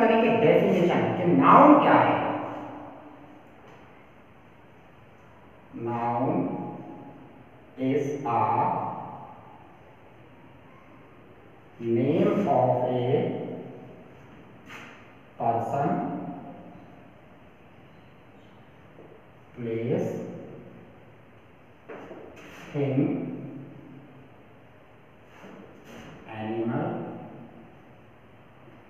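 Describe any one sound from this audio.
A man speaks calmly in short phrases nearby.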